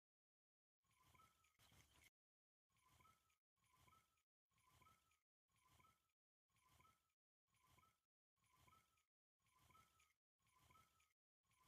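A fishing reel clicks steadily as it is wound in.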